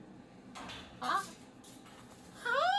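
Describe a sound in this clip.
A cockatoo lets out short squawks.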